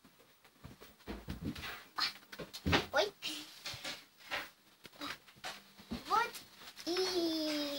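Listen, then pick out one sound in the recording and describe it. Bedding rustles as a girl climbs onto it.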